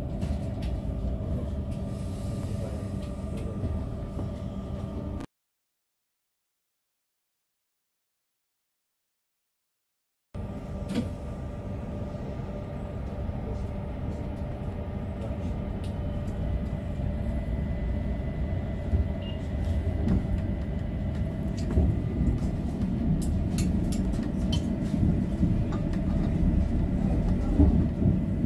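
A tram hums and rumbles steadily along its rails.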